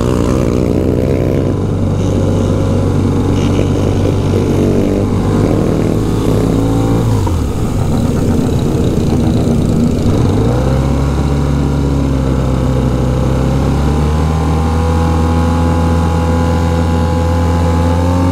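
Other motorcycle engines drone nearby.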